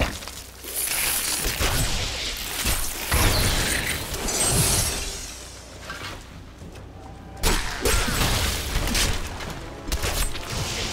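Video game spell effects crackle and burst in a fight.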